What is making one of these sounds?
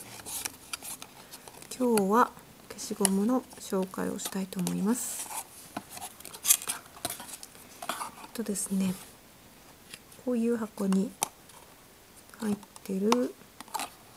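A cardboard box rustles and scrapes as its flaps are pulled open.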